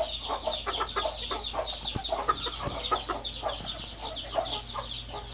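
Chickens chirp and cluck rapidly close by.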